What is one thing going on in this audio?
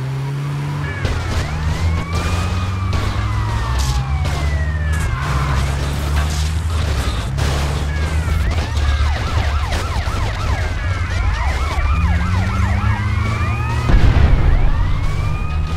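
Police sirens wail and sweep up and down.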